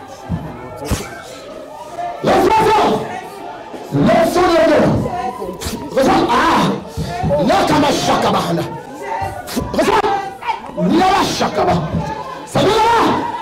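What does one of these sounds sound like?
A crowd of men and women pray aloud in a low murmur.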